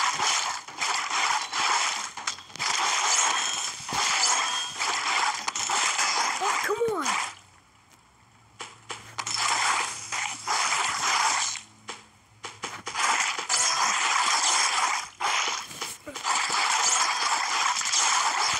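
Swooshing slices and splats sound from a fruit-cutting game.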